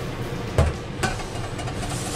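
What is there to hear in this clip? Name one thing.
A spatula taps against a sieve's rim.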